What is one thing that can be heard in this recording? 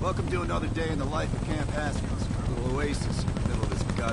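A helicopter's rotor thumps with a low, steady roar overhead.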